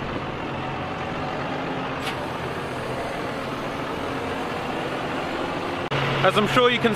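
A tractor engine rumbles steadily outdoors.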